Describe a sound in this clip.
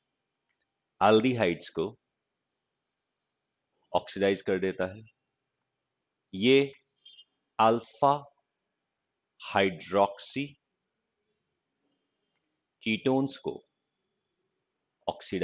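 A middle-aged man speaks calmly into a microphone, pausing often.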